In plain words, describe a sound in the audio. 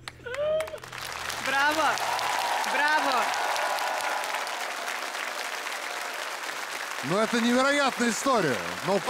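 A crowd claps and cheers loudly in a large hall.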